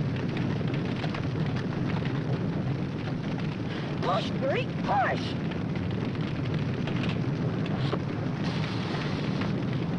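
A brush fire crackles and roars.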